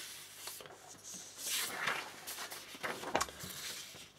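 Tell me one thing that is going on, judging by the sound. A sheet of paper rustles as it is moved.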